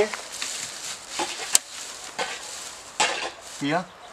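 Dry straw rustles and crackles as it is stuffed into a hole.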